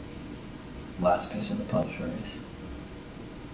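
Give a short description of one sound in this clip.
A man speaks briefly and calmly, nearby.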